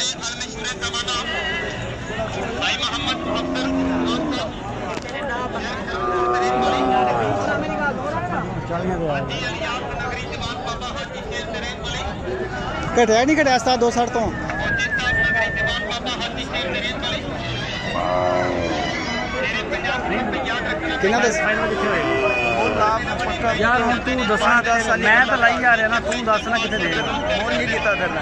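A crowd murmurs and chatters all around outdoors.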